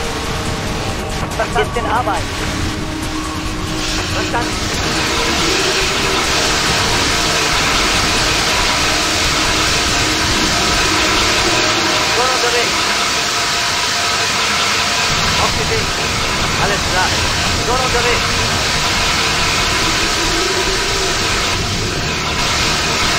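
Flames crackle as a fire burns.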